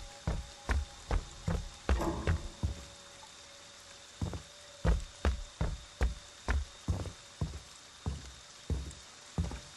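Heavy footsteps thud on wooden floorboards at a steady walking pace.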